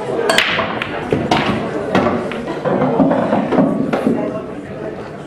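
Balls knock together and roll across a table.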